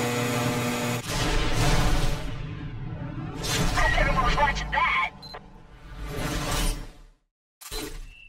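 A car's engine revs and idles after braking.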